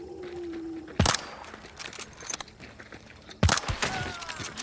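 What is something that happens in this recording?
A gun fires two loud single shots with a short echo.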